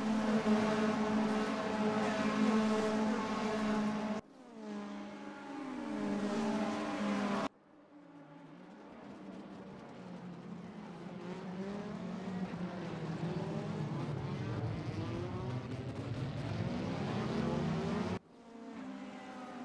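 Racing car engines roar and whine as a pack of cars speeds past.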